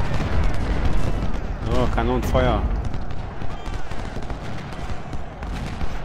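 Gunfire crackles and pops in a distant battle.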